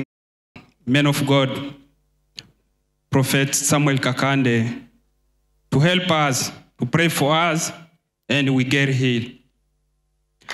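A man speaks loudly into a microphone in bursts, heard through loudspeakers.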